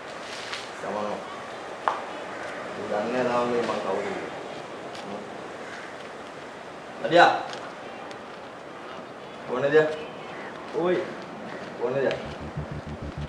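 Young men talk in a tense exchange, with echo.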